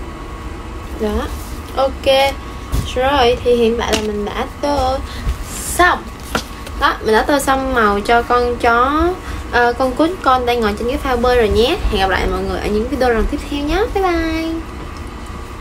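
A young woman speaks softly and closely into a microphone.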